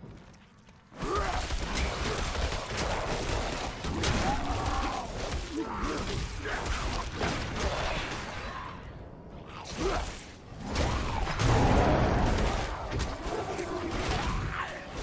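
Weapons strike and slash in a fierce fight, with loud impacts.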